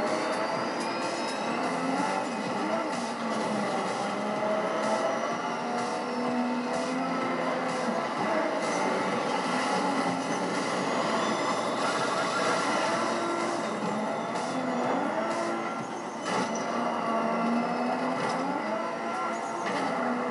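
A racing car engine roars and revs steadily throughout.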